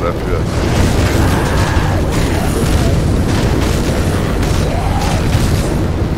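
Explosions boom and crackle with flames.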